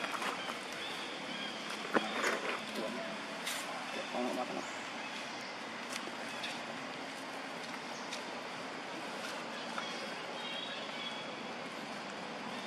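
A macaque shuffles its feet in dry leaves.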